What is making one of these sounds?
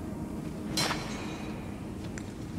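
A sword swings with a sharp whoosh and ringing shimmer.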